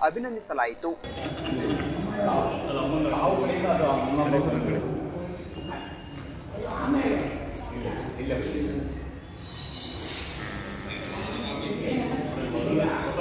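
Adult men and women chat together close by.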